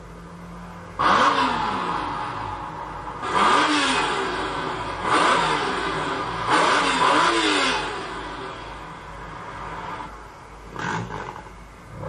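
A car engine revs loudly in repeated bursts.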